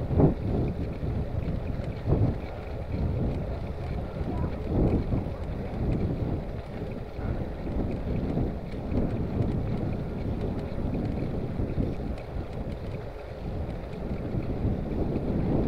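A bicycle basket rattles over the bumpy road.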